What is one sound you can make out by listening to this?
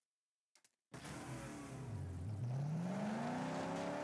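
A car engine starts and revs up.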